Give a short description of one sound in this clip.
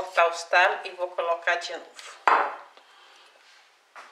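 A glass bottle is set down with a knock.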